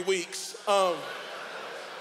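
A man shouts forcefully into a microphone over loudspeakers.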